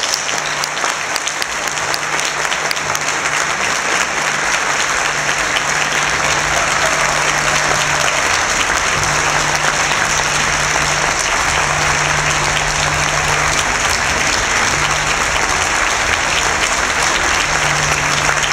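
An audience claps and cheers loudly in a large hall.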